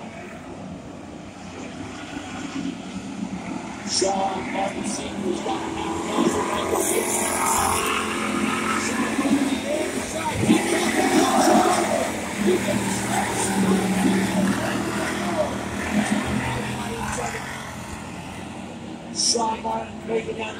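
Race car engines roar around a dirt track outdoors.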